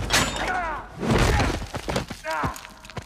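A man crashes down hard onto the floor.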